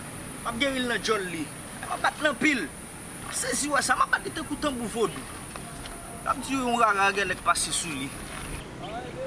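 A young man sings close by.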